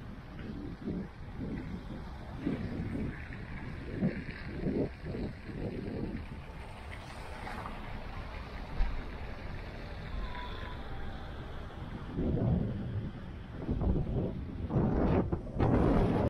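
Tyres roll over a wet, slushy road as a car drives along.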